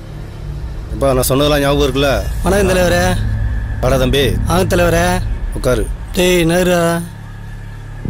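A second man answers in a raised, lively voice.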